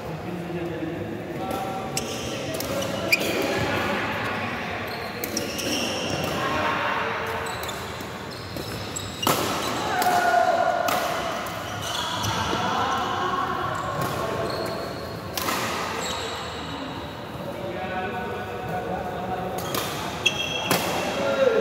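Shoes squeak and thud on a court floor.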